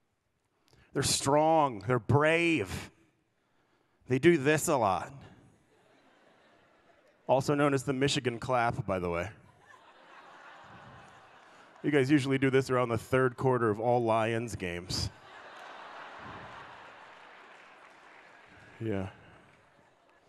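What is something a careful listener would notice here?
A man speaks animatedly through a microphone and loudspeakers in a large hall, pausing between phrases.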